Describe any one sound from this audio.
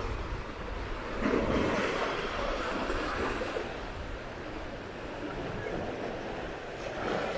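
Small waves wash and lap against rocks on the shore.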